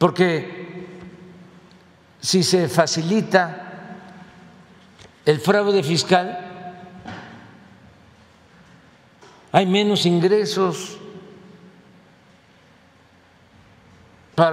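An elderly man speaks slowly and deliberately into a microphone, in short bursts with pauses, in a room with a slight echo.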